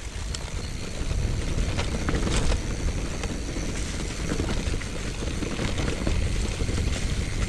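Wind rumbles loudly past the rider.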